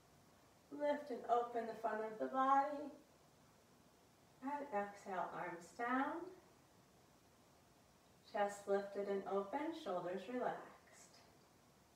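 A woman speaks calmly and slowly in short phrases.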